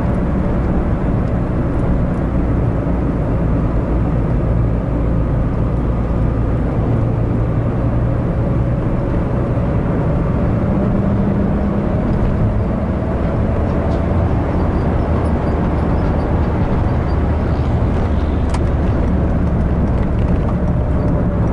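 A car engine hums steadily from inside the cabin.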